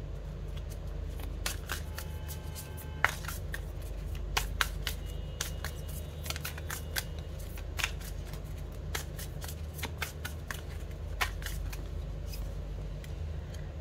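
A deck of cards is shuffled with quick flicking and clicking.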